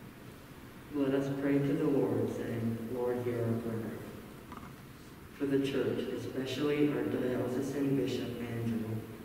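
A teenage boy reads out calmly through a microphone.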